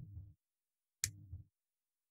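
Pliers snip a wire with a short, sharp click.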